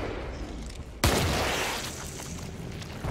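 A large explosion booms.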